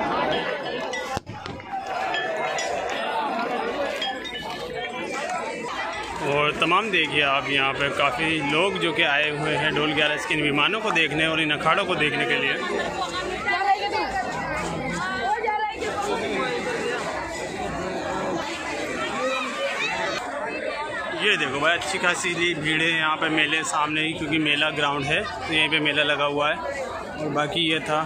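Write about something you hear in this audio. A large crowd chatters and murmurs all around outdoors.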